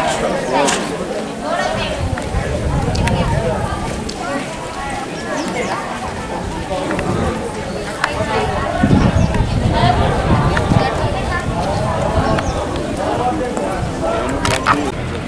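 A crowd of women and men chatter close by.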